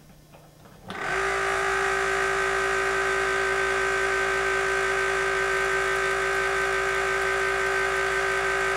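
A machine motor starts and hums steadily with a high whine.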